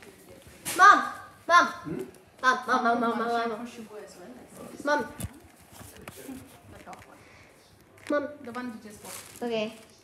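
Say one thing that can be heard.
Footsteps pad across a tiled floor.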